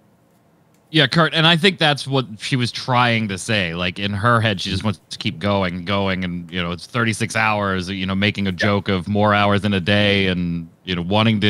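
A man speaks with animation through a microphone over an online call.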